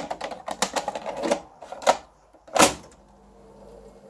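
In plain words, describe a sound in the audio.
A cassette compartment lid snaps shut.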